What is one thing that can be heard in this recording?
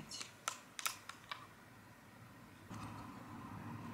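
Plastic parts click and snap together close by.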